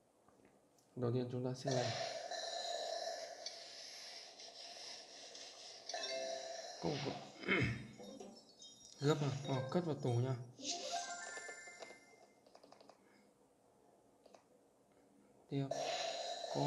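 Cheerful game music and chimes play from a tablet speaker.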